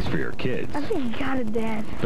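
A young boy talks.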